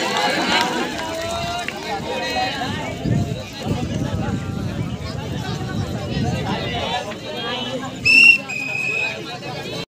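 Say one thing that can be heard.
A large outdoor crowd chatters and shouts with excitement.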